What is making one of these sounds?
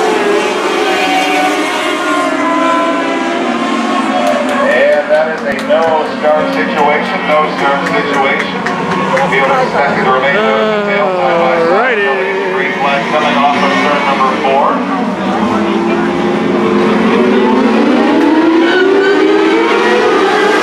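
Race car engines roar and rev around a track.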